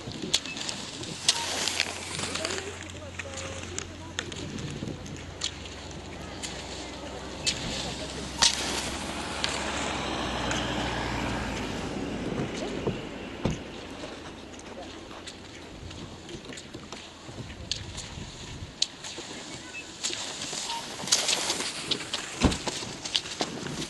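Ski poles click and scrape against hard snow.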